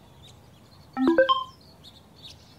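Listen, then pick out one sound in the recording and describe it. A short bright chime rings.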